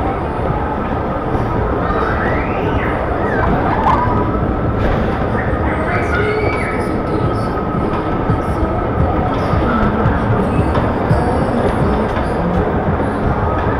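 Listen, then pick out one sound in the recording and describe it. A bumper car hums and rumbles as it rolls across the floor.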